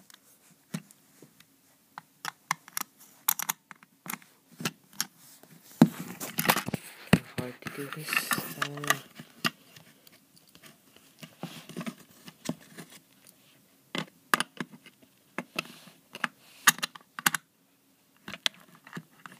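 A screwdriver scrapes and clicks against a plastic toy.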